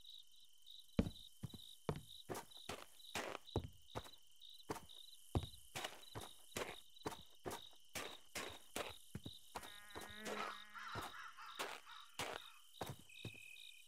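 Footsteps crunch steadily over snow and grass.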